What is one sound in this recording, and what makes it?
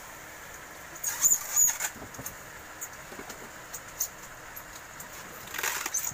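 Plastic bags rustle as they are handled.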